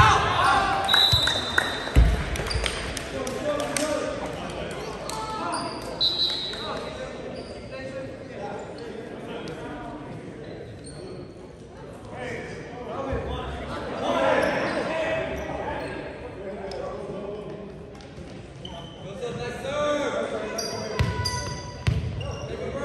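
Young players call out to each other across an echoing gym.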